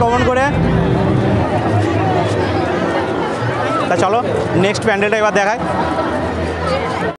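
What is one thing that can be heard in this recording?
A crowd chatters all around in a busy open space.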